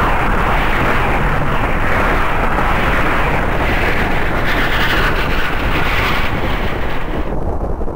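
Missiles launch and explode with bursts of thunder.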